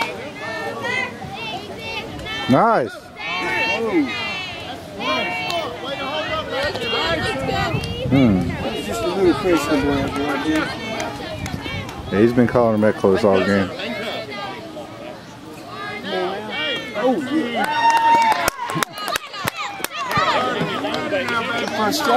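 Young girls chant and cheer loudly outdoors.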